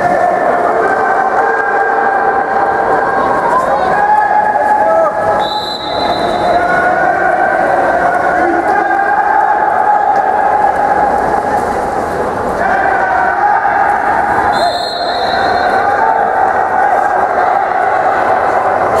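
Swimmers splash and thrash through water in a large echoing hall.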